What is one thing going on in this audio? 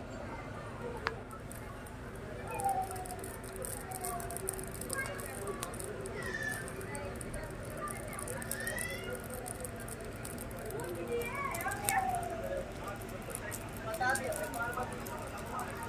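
A man's hands stir and rustle dry grain in a large pot.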